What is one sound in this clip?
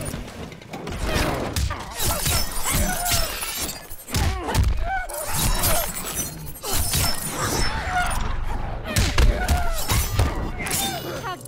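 Heavy blows land with loud, thudding impacts.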